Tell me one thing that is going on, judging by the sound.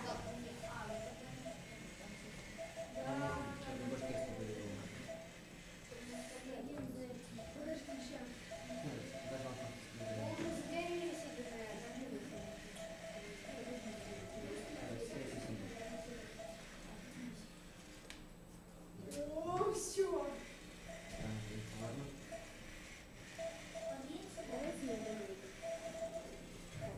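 Children talk quietly nearby in a room.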